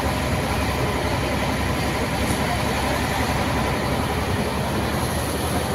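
A fire hose sprays a jet of foam onto a truck cab.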